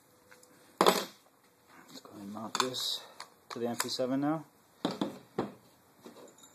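Hard plastic parts click and knock together as they are handled.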